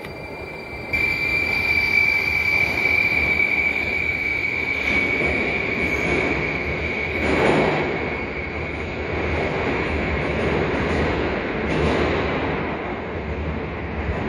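A subway train pulls away with a rising electric whine.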